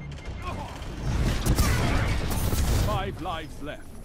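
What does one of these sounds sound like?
An energy blast explodes with a crackling roar.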